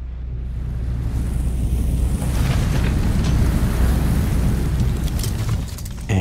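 A flamethrower blasts with a loud whooshing roar.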